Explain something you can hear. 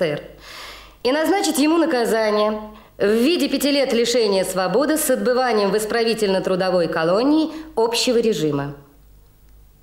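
A middle-aged woman reads aloud in a firm, even voice.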